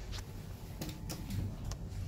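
An elevator button clicks when pressed.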